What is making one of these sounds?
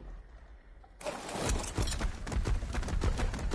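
A large beast's heavy footsteps thud on dry ground.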